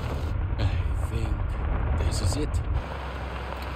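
A man speaks quietly inside a car.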